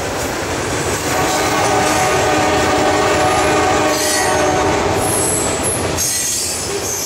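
Metal wheels screech against the rails.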